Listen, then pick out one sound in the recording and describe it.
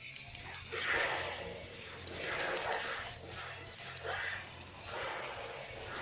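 Energy blasts whoosh and burst in quick bursts.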